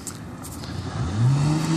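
Another car engine approaches at the end.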